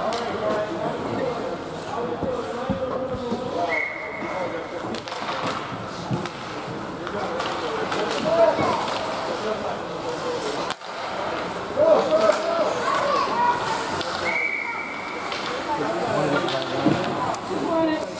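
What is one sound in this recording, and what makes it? Voices of young players and spectators chatter and call out in a large echoing rink.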